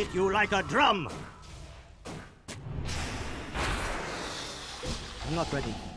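Magic spell effects whoosh and crackle during a fight.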